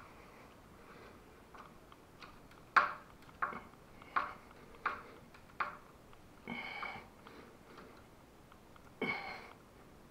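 A screwdriver turns a screw, with sharp metal clicks and squeaks.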